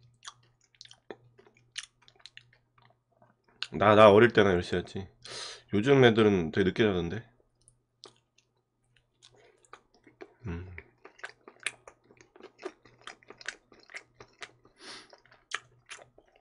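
A man chews food with wet smacking sounds close to a microphone.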